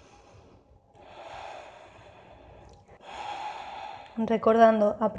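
A woman breathes out slowly and audibly.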